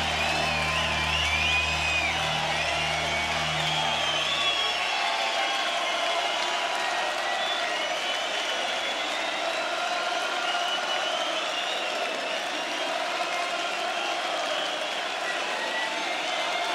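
People in a crowd whistle shrilly.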